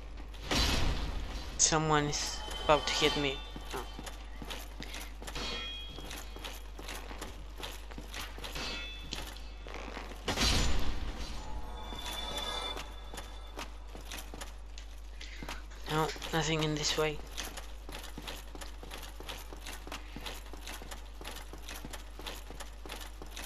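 Heavy footsteps clank on stone floors.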